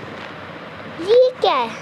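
A boy shouts loudly close to a microphone.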